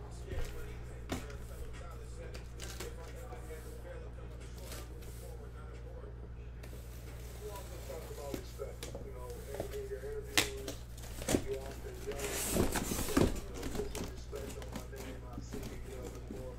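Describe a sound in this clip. A cardboard box scrapes and rustles as it is handled and opened.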